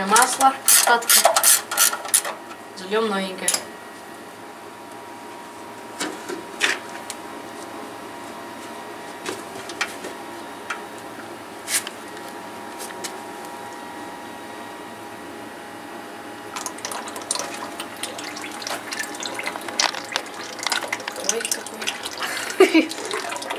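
Metal tools clink and tap against metal.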